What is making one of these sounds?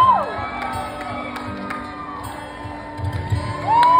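A man strums an acoustic guitar through a loudspeaker.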